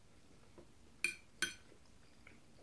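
A fork clinks on a plate.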